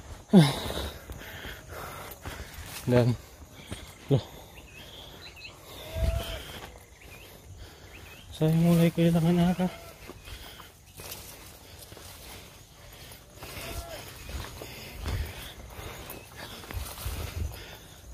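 Tall grass brushes and rustles against a passing walker.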